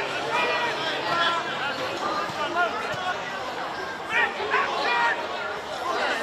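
Men shout and call to each other across an open field.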